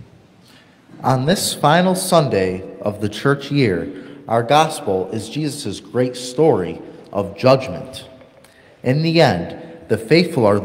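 A young man speaks calmly into a microphone, heard through a loudspeaker in a large room.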